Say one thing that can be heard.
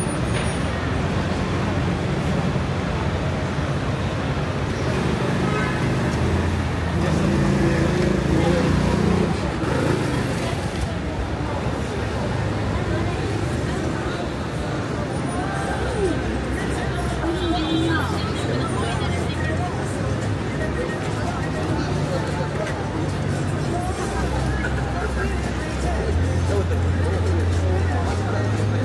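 Traffic hums along a city street.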